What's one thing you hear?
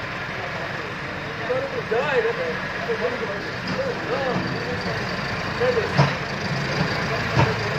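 A loader blade scrapes through wet dirt.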